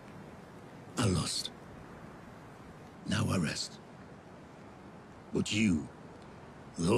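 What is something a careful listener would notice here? A young man speaks in short bursts through a microphone.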